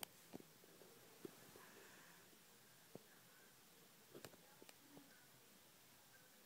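A hand softly rubs a dog's fur.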